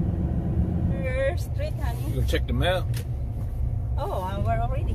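A woman speaks and laughs close by.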